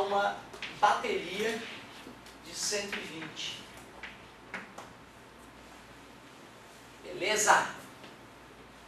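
A man speaks calmly in a lecturing tone.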